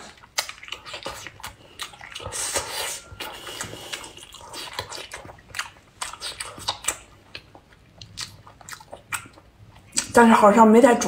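A young woman chews soft food close to a microphone, with wet smacking and squelching.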